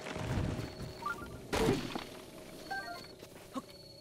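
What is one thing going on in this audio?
Game chimes ring as items are picked up.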